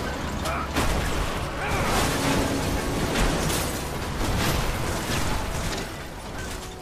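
Heavy metal debris crashes and clatters.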